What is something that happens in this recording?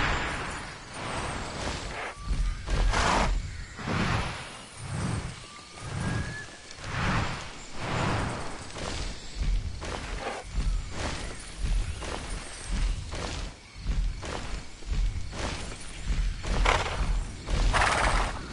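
Large wings flap in a slow, steady rhythm.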